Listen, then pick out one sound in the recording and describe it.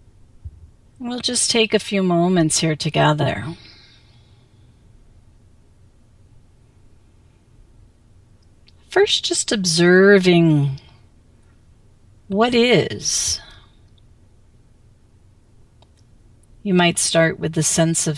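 A middle-aged woman speaks calmly and slowly into a headset microphone, with long pauses.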